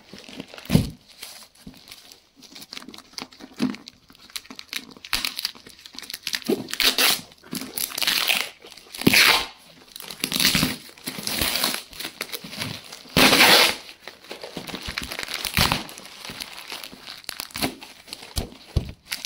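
Packing tape rips and crackles as it is peeled off a cardboard box.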